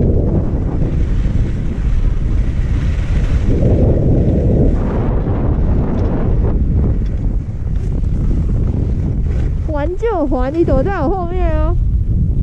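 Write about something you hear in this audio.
Skis hiss and swish across soft snow, slowing to a stop.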